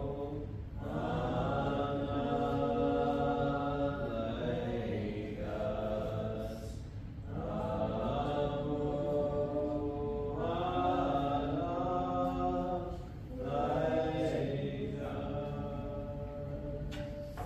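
A small congregation sings a slow hymn in an echoing hall.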